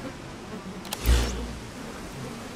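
A deep whoosh sounds as a menu opens.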